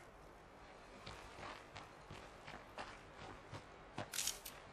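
Footsteps crunch over soft ground.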